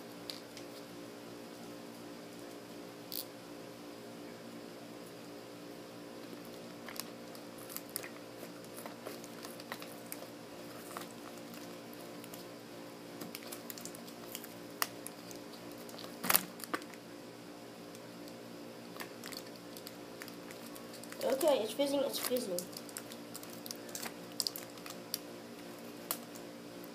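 Small clicks and taps sound against a plastic bottle.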